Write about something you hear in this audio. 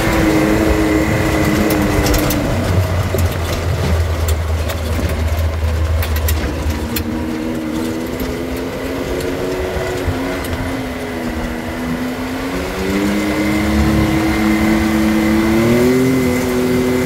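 An off-road vehicle's engine hums and rises and falls in pitch as it drives.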